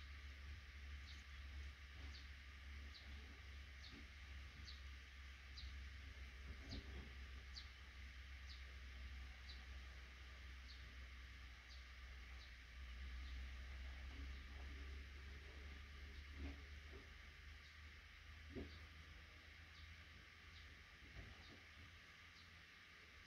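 Baby birds in a nest cheep with short, high peeps, over and over.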